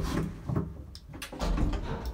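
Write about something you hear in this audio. A lift button clicks as a finger presses it.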